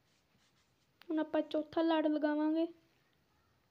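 A child speaks briefly in a drawn-out, sing-song voice close by.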